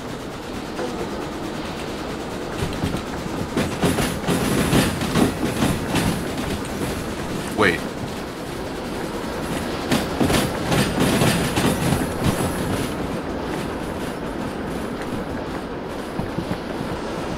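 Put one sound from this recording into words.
A steam locomotive chuffs and rumbles steadily.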